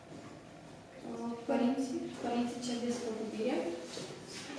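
A teenage girl speaks clearly, nearby in a room.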